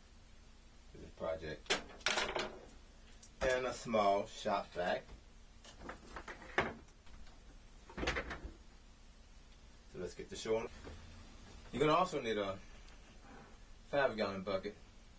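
A middle-aged man talks calmly and close by, in short phrases.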